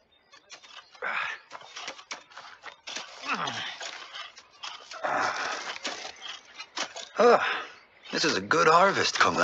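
Hoes scrape and chop into soil.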